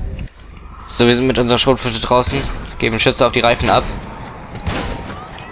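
A shotgun fires several loud shots.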